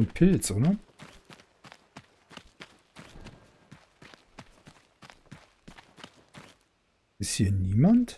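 Footsteps patter quickly on soft ground.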